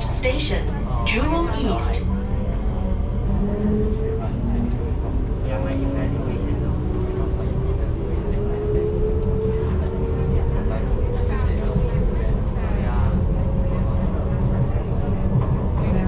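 A train's motor whines, rising slowly in pitch as it speeds up.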